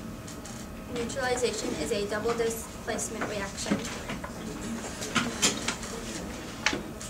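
A girl reads aloud calmly, close by.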